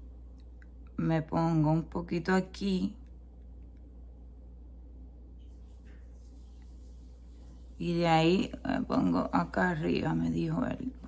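A woman talks calmly and close to the microphone.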